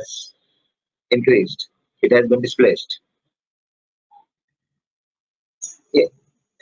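A middle-aged man speaks calmly into a microphone over an online call, in short phrases.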